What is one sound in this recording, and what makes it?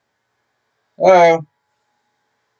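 A man lets out a brief loud shout.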